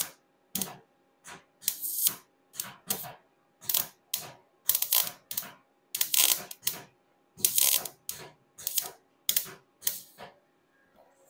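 A welding torch crackles and sizzles in short bursts.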